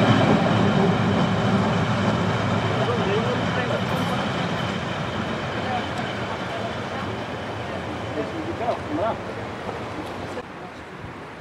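An electric locomotive rumbles along the rails and slowly fades into the distance.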